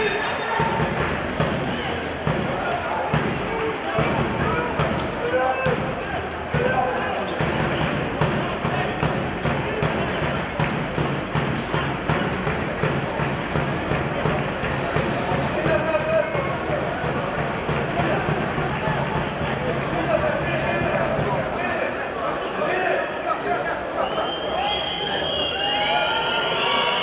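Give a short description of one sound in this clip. Nearby spectators chatter and call out in an open stadium.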